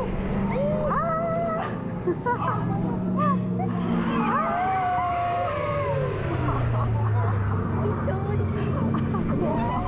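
Young riders shout and chatter nearby with excitement.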